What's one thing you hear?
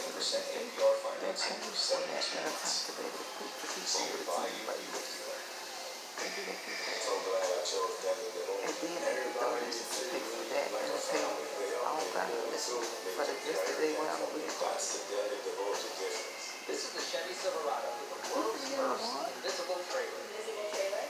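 A middle-aged woman talks with animation close to a phone microphone.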